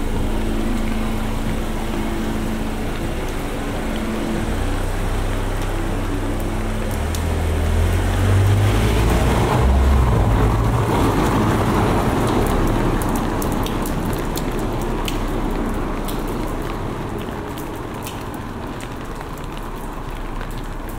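Raindrops tap on an umbrella overhead.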